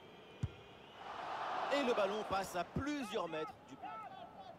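A stadium crowd cheers loudly, then dies down.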